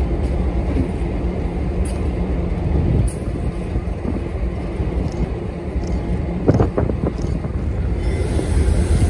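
A diesel locomotive engine rumbles deeply as it rolls slowly past.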